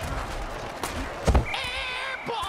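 Armoured players crash together in a tackle.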